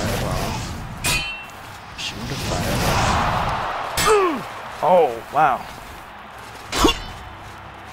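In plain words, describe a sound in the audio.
A sword clangs against metal armour.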